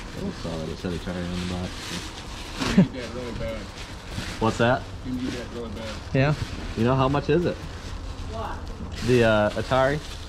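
Paper crinkles as a man unwraps an item.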